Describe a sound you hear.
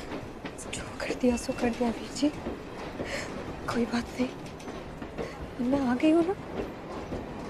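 A young woman speaks in a hushed, tense voice close by.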